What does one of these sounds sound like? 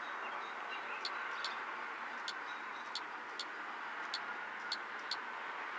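Fingertips tap lightly and quickly on a touchscreen.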